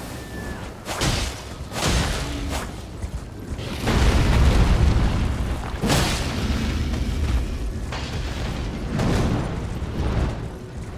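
Heavy crashes and thuds land again and again.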